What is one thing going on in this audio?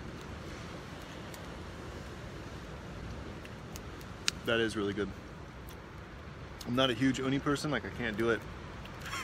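A small fire crackles softly.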